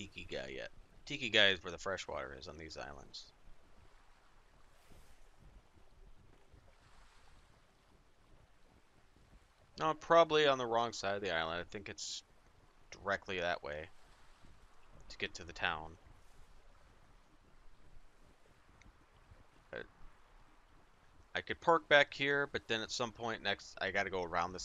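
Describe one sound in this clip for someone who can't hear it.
Water washes against the hull of a sailing ship.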